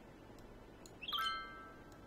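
A bright electronic chime rings out and fades.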